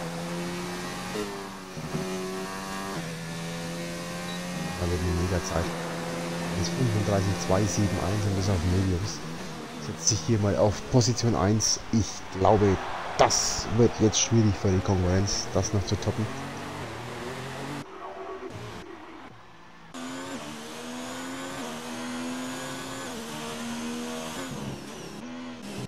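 A racing car engine revs high and shifts through gears, rising and falling in pitch.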